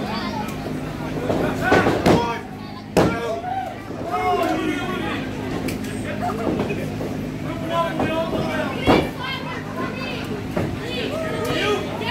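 A small crowd of spectators shouts and chatters in a hall.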